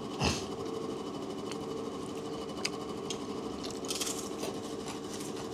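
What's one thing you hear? Crisp food crunches as an elderly man eats.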